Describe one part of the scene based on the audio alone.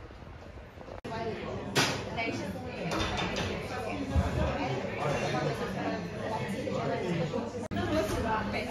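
Several men and women talk quietly at a distance in a room.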